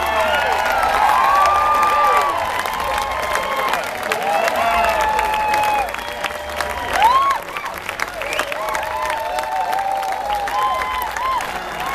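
A large outdoor crowd claps and cheers.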